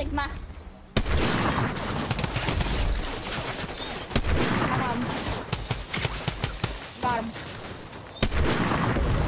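A sniper rifle fires loud single shots.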